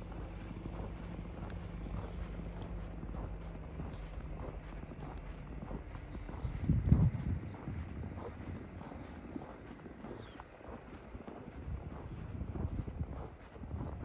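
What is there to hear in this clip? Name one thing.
Footsteps crunch steadily on packed snow.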